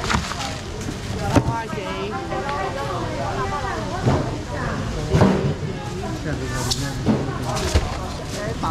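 Foam boxes knock and thud as they are handled.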